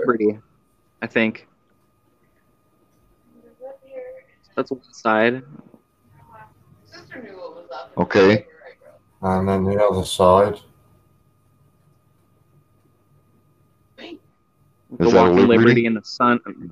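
A man talks over an online call, with pauses.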